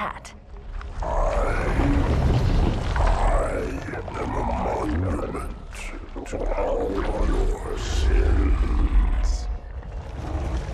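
A deep monstrous voice speaks slowly and menacingly.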